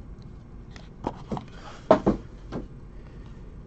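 Stiff trading cards tap and click as hands handle them.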